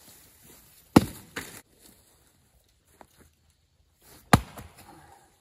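An axe strikes wood with sharp thuds.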